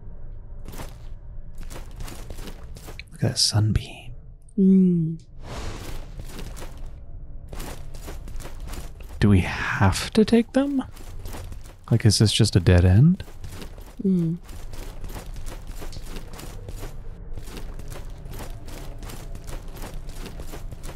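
Footsteps run quickly over hard stone.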